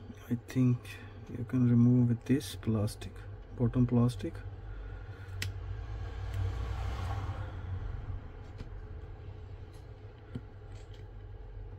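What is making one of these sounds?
A small metal tool clicks and scrapes against a phone's parts.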